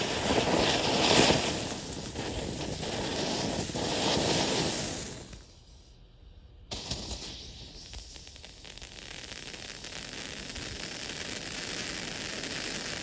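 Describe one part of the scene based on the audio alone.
Fireworks fountains hiss and crackle loudly.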